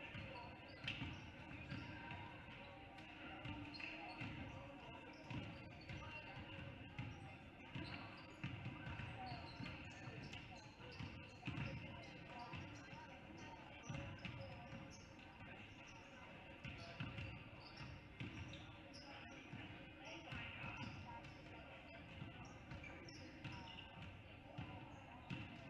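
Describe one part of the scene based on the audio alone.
A small crowd murmurs in a large echoing gym.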